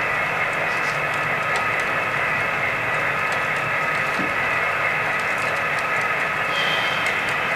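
A model train rumbles steadily along its track.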